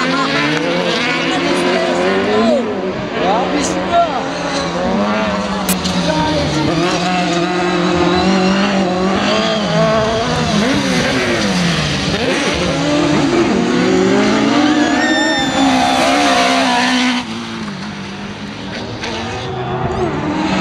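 Small racing car engines whine and rev loudly, rising and falling in pitch.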